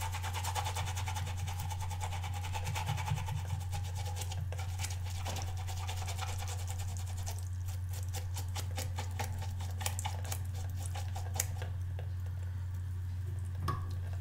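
A small brush scrubs rapidly against a soft rubber pad.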